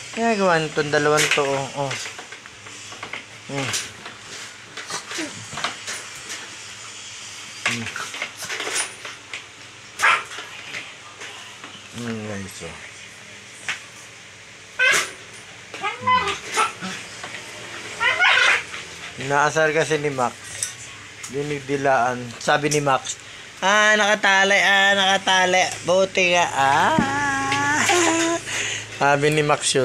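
Two dogs growl and snarl playfully as they wrestle.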